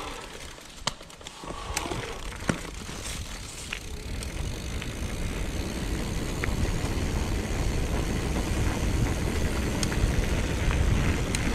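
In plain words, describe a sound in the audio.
Bicycle tyres roll over a rough concrete path.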